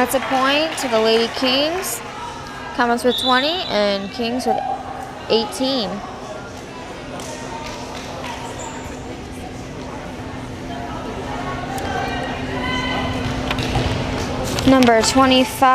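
Young women shout and cheer together in an echoing hall.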